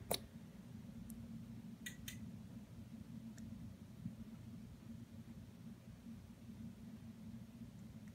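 Fine grains trickle softly into a glass bottle.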